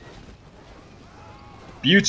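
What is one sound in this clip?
Arrows whoosh through the air.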